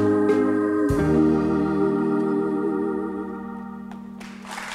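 A woman sings a long held note with vibrato.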